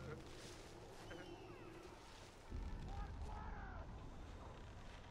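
Leaves rustle as someone pushes through dense foliage.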